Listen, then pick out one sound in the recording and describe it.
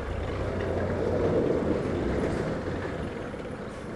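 Another motorcycle passes by.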